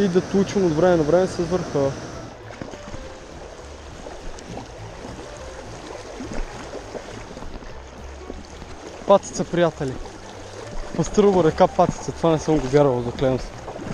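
A shallow stream ripples steadily over stones.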